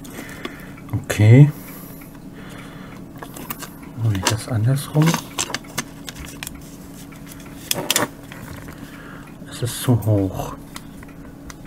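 Plastic squeaks and creaks as parts are pried apart.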